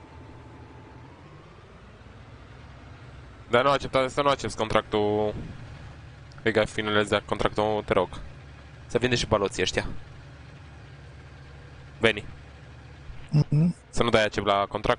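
A tractor engine revs up as the tractor drives off.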